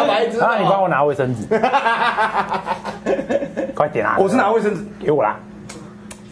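A young woman laughs and talks close to a microphone.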